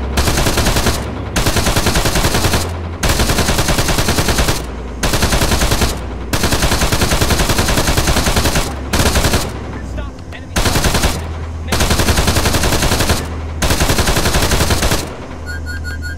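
A vehicle engine roars loudly in repeated bursts.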